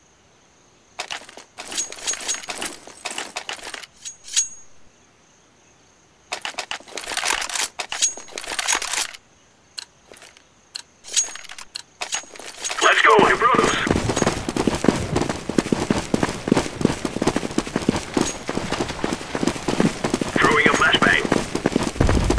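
Footsteps thud quickly on gravel.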